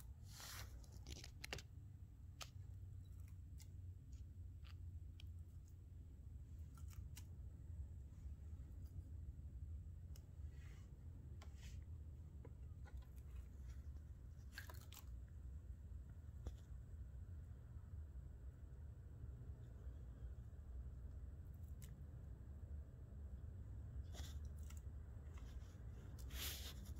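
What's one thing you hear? A lizard's claws scrape and tap on hard plastic.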